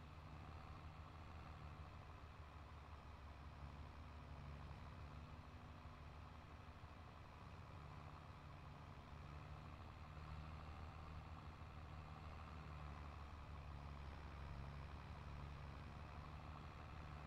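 A tractor engine rumbles steadily as the tractor drives along.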